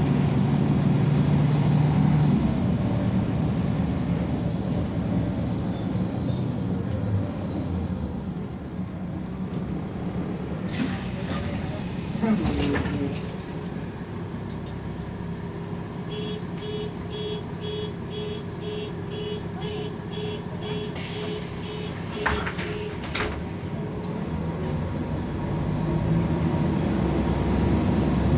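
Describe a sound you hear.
A diesel city bus engine runs, heard from inside the bus.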